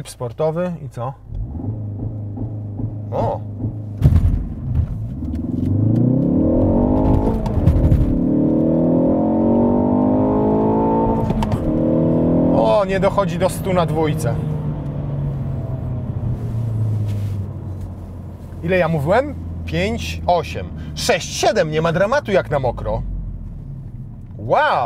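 A car engine hums inside the cabin.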